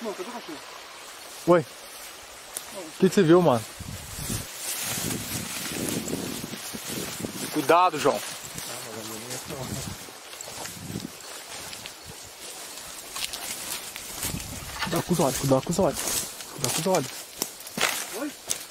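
Footsteps crunch and rustle through dry grass and brush.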